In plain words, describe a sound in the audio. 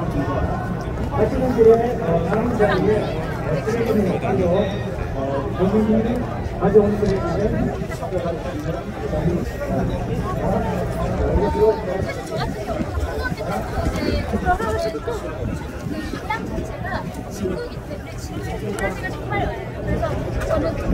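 A young woman speaks cheerfully into a microphone close by.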